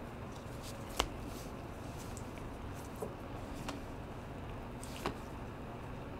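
Trading cards slide and tap softly as they are handled.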